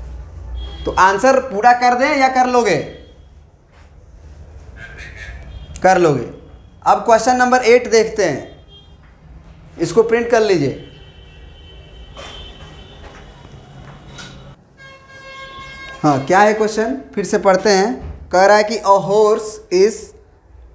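A young man speaks clearly and steadily, pausing between phrases.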